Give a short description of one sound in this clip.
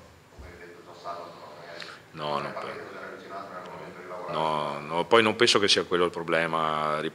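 A middle-aged man speaks calmly and thoughtfully into a microphone.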